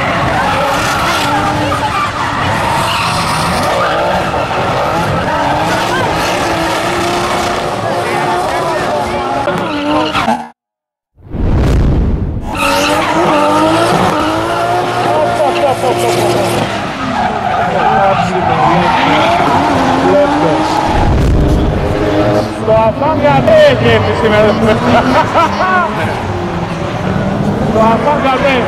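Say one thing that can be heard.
Tyres squeal and screech on tarmac.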